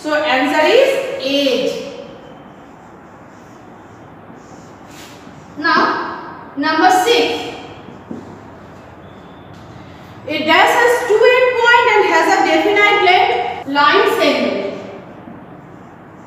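A woman speaks clearly and loudly.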